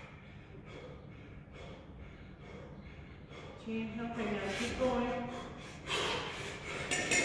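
A man breathes out hard in a steady rhythm.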